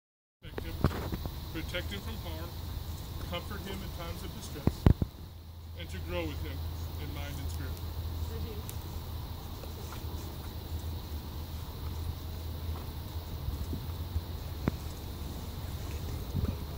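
A middle-aged man reads out calmly at a distance, outdoors.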